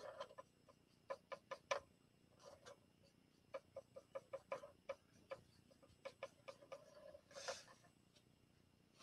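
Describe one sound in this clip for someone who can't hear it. A paintbrush taps and dabs lightly against a hard surface.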